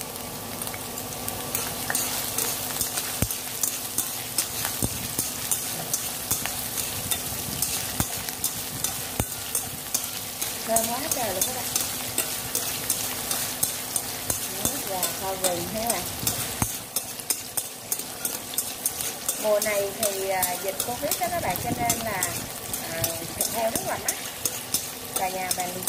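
Food sizzles and crackles in a hot pan.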